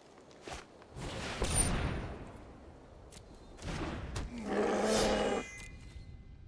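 Digital card game effects whoosh and chime as cards are played.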